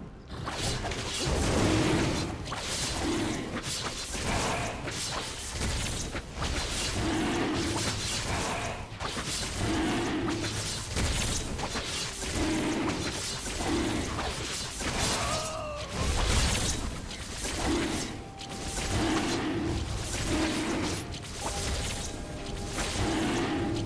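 Clashing fight sounds and magic blasts ring out in quick bursts.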